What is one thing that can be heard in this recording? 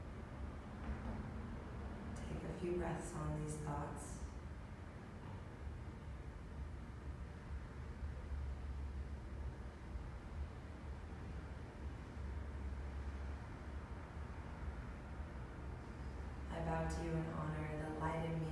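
A young woman speaks calmly and softly nearby, with long pauses.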